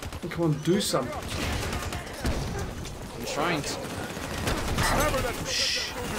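Rifles fire in short bursts.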